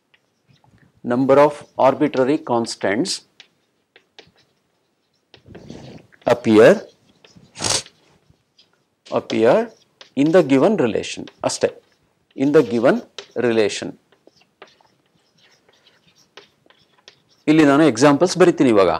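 A middle-aged man lectures calmly into a close microphone, pausing between phrases.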